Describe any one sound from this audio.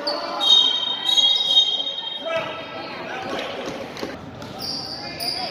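Spectators murmur and chatter in a large echoing gym.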